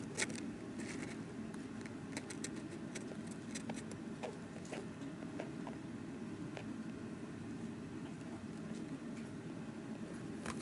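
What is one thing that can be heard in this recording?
A small hamster chirps and squeaks softly, close by.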